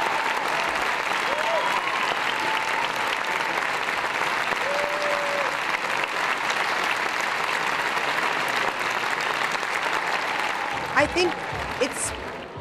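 Audience members whistle and cheer.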